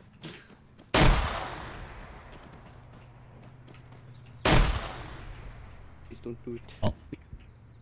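Explosions boom loudly with a long rumbling echo.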